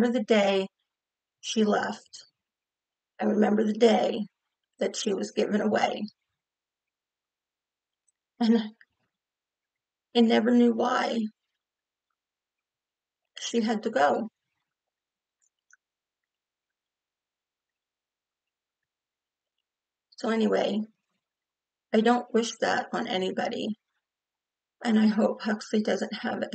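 A middle-aged woman speaks calmly into a nearby microphone, pausing often.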